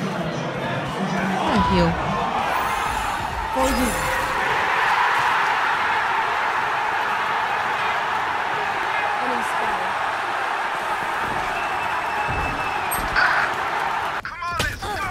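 A large crowd cheers and roars loudly in an echoing hall.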